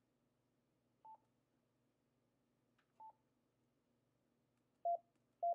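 A radio gives short beeps as its knob is turned.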